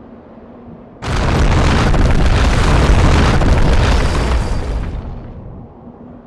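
Heavy rocks crash and tumble with a deep rumble.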